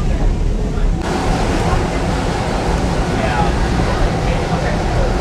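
A woman laughs and talks close by.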